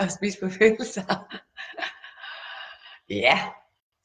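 A woman laughs with animation, close by.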